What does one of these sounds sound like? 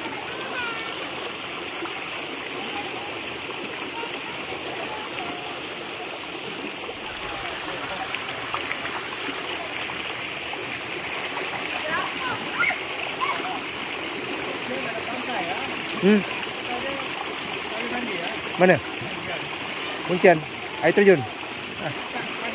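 Children splash in shallow water.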